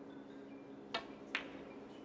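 A cue strikes a snooker ball with a sharp tap.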